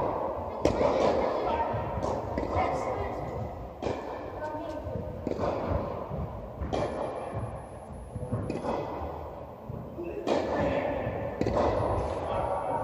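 Tennis balls are struck back and forth with sharp pops that echo in a large hall.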